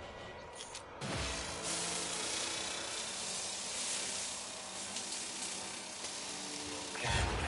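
A mining beam hisses and crackles steadily against rock.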